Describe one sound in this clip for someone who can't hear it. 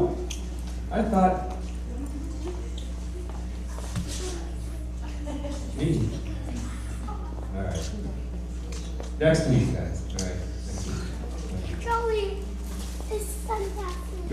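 Young children chatter and call out.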